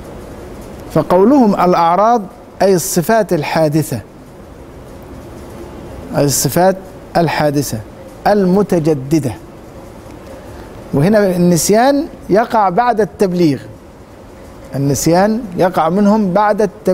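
A middle-aged man recites in a melodic, chanting voice through a close microphone, in short phrases with pauses.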